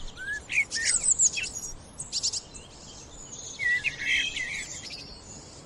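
A blackbird sings close by with fluting, warbling phrases and high chirps.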